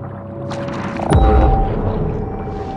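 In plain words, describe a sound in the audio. An electric burst crackles and booms.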